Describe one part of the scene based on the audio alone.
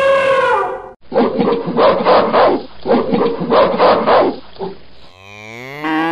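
A gorilla grunts and roars.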